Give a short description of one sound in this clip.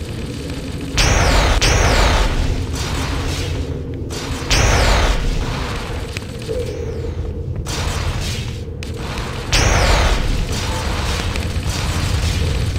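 An energy weapon fires and explodes with a loud burst.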